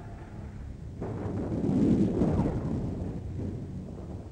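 A shell explodes with a deep, rumbling blast.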